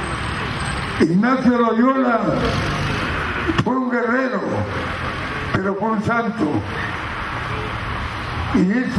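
An elderly man speaks slowly into a microphone, heard through loudspeakers.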